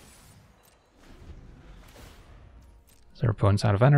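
A deep swoosh sounds as a turn changes in a game.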